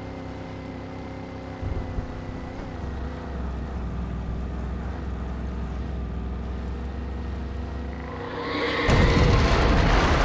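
A pickup truck engine rumbles steadily as it drives over rough ground.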